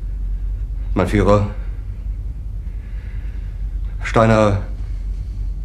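A middle-aged man speaks hesitantly in short halting words.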